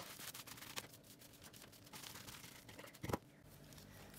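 Gloved hands squish and mix a moist filling in a metal pot.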